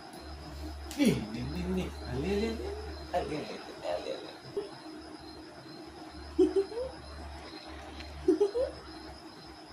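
A man talks playfully to a toddler close by.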